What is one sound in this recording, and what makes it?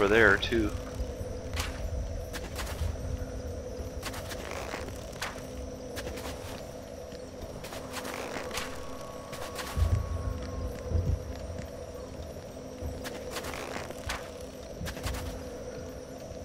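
A bowstring snaps as arrows are loosed, one after another.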